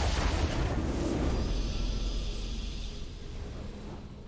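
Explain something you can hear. A triumphant fanfare plays as a video game ends.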